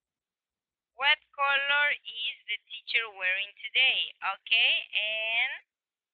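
A young woman speaks clearly and with animation over an online call.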